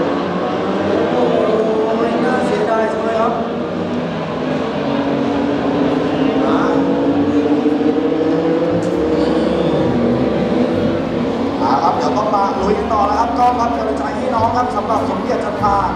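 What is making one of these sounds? Motorcycle engines drone in the distance.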